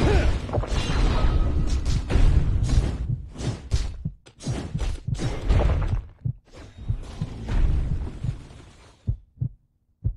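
Weapons clash and spells boom in a hectic fight.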